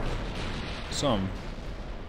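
A shell explodes with a loud blast.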